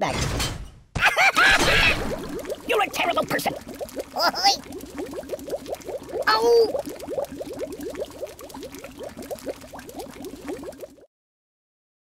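Liquid bubbles and gurgles steadily in a tank.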